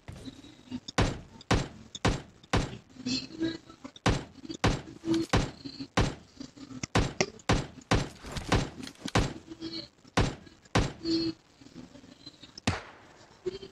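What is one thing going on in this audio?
Gunshots fire one at a time in a quick, uneven rhythm.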